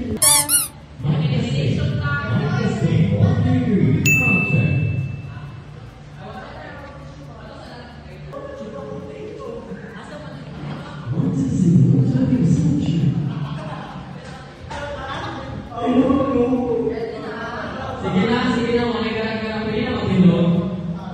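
A young man sings loudly into a microphone through a loudspeaker in an echoing room.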